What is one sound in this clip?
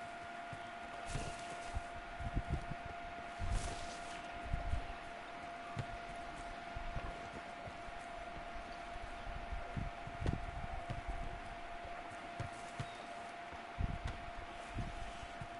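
A ball is kicked with dull thumps.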